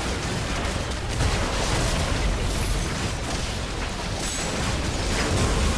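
Spell effects crackle and whoosh in a fast game fight.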